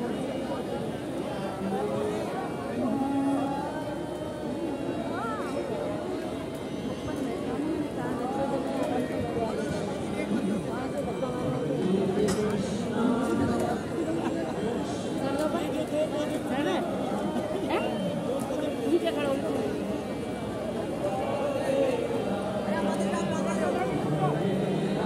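A crowd of men and women chatter and call out all around, outdoors.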